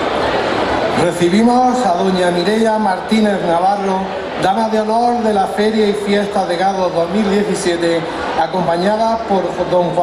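A man speaks steadily into a microphone, heard over loudspeakers.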